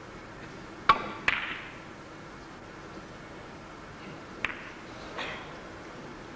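Billiard balls click sharply against each other, with a faint echo in a large hall.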